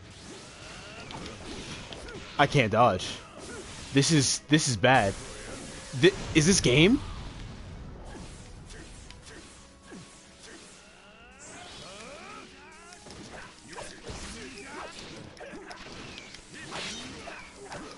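Energy blasts crackle and boom in a fight.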